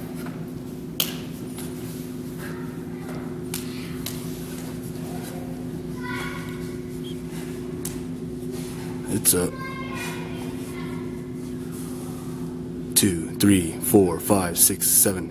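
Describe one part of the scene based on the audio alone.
Bare feet thump and slide on a mat.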